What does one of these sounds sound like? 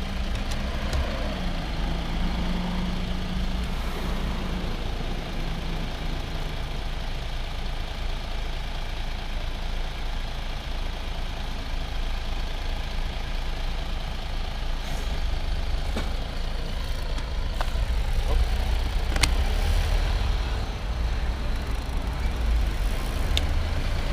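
A bus engine hums close ahead.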